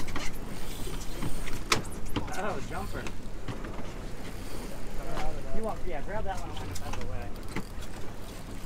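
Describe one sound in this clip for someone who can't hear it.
Wind blows steadily across the microphone outdoors on open water.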